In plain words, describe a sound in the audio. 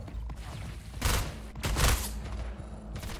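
Gunfire blasts in short bursts close by.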